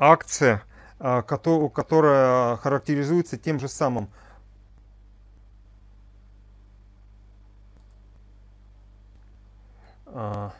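A middle-aged man speaks calmly through a microphone on an online call.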